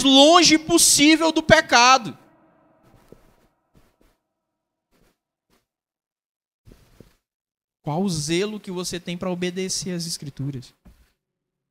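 A man speaks with emphasis into a microphone over loudspeakers in a large echoing hall.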